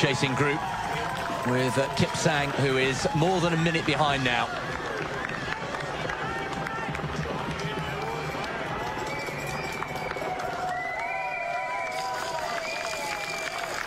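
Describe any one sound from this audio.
A crowd cheers along a street outdoors.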